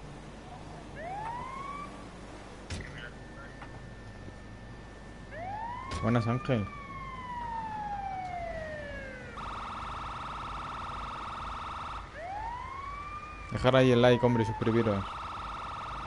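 An ambulance siren gives short rising and falling whoops.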